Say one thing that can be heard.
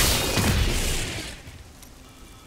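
A burst of loud game combat effects crashes and then fades away.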